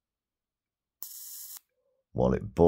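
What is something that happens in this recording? An electric lighter's spark buzzes and crackles briefly.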